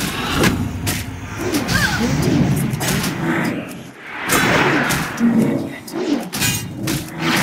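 Weapons clash and strike repeatedly in a fight.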